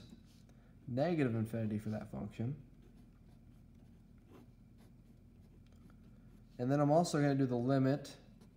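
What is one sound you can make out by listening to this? A felt marker squeaks and scratches on paper.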